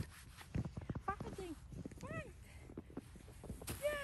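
Boots crunch in snow.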